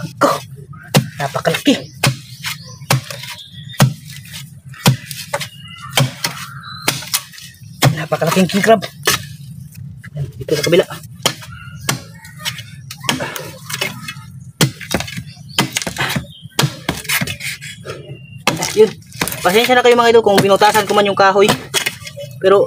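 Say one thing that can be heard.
A bush knife chops into wet mud and roots with dull thuds.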